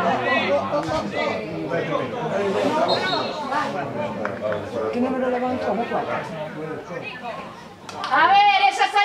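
Spectators talk and call out close by, outdoors.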